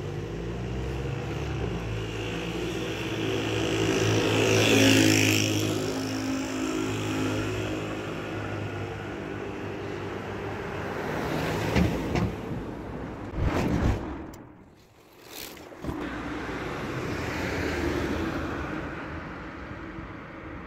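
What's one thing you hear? Cars drive past close by.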